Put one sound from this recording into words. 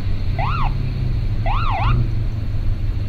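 A siren whoops in short rising and falling bursts.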